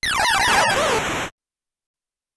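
Electronic arcade game sounds chirp and sweep downward in quick bursts.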